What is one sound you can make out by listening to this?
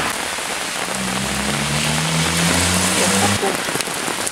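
A car engine hums and rises in pitch as it passes close by.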